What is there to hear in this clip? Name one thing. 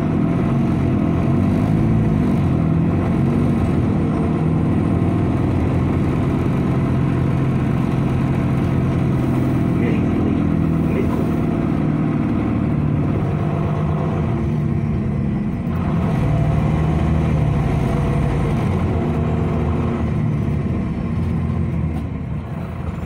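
A bus engine rises and falls in pitch as the bus speeds up and slows.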